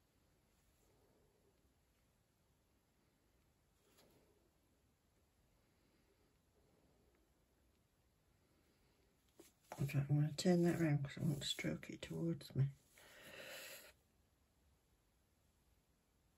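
A brush scrapes lightly inside a small jar.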